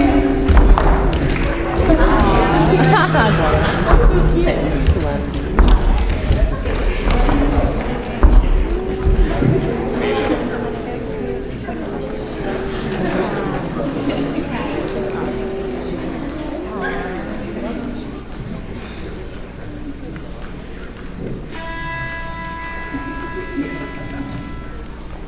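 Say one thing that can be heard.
A man speaks into a microphone through loudspeakers in a large echoing hall.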